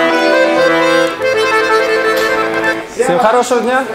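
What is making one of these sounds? An accordion plays a lively tune.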